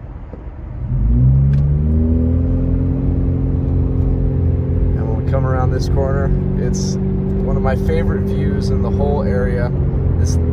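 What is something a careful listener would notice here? A car's engine revs up as the car pulls away and keeps a steady drone.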